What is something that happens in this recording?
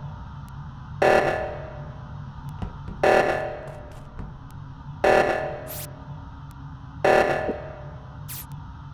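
An alarm blares in loud repeated bursts, every two seconds.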